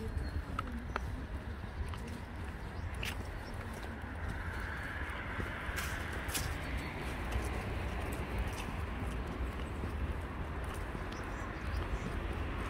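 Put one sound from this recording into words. Footsteps scuff on a paved path strewn with dry leaves.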